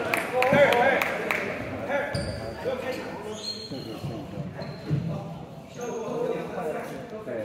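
A man speaks with animation nearby in an echoing hall.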